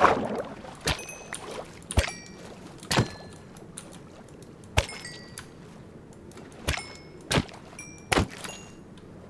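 A sword strikes a fish with short, sharp hits.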